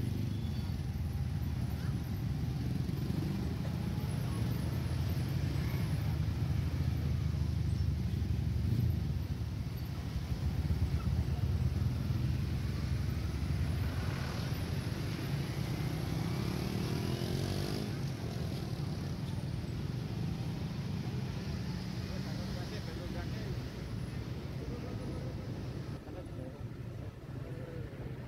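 A motor scooter engine hums while riding along a road.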